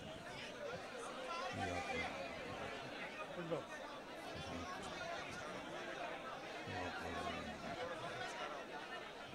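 A large crowd of men murmurs and talks all around, close by.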